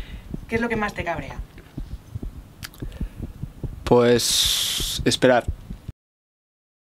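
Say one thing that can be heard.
A young man speaks calmly into a microphone close by.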